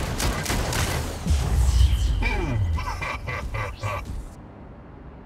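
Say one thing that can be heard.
Rapid weapon fire blasts and rattles.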